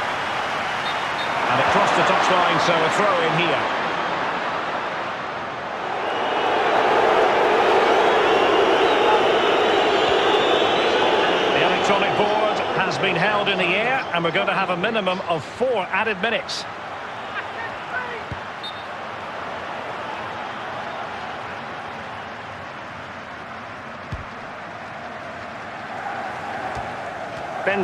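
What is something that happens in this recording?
A stadium crowd roars and cheers, swelling and fading.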